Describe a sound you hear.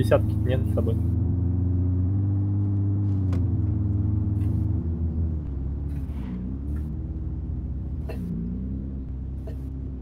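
A car engine hums steadily, rising and falling with the throttle.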